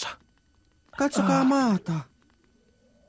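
A young woman exclaims loudly.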